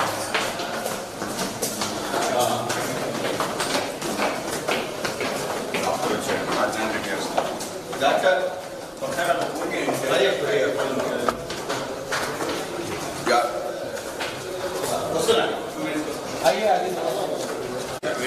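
Footsteps climb stairs.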